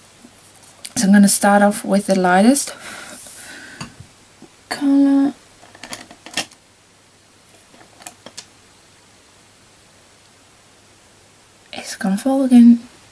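A young woman speaks close up, in short bursts with pauses.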